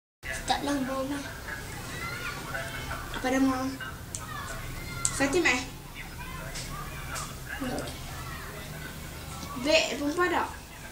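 A young boy talks nearby.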